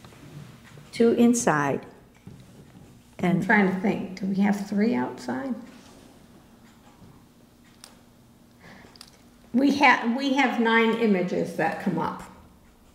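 An elderly woman speaks calmly into a microphone.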